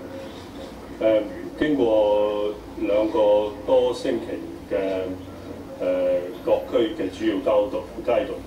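A man speaks calmly into microphones, heard through a television speaker.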